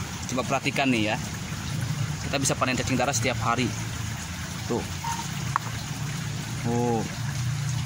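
Wet reeds rustle as a hand sorts through them.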